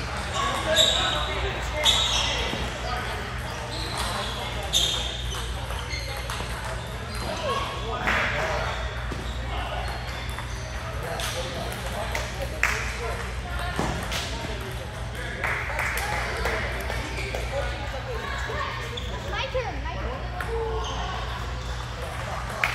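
Ping-pong balls click on tables and paddles in a large echoing hall.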